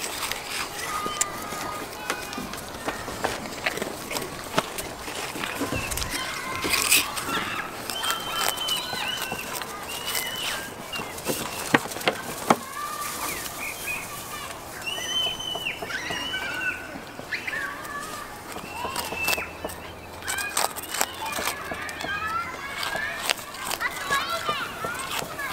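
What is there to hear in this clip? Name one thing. A goat crunches on a cracker.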